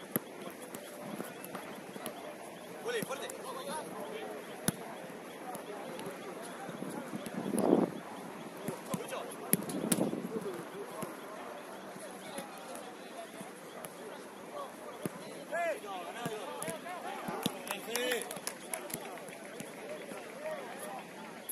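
Players shout and call to each other across an outdoor field.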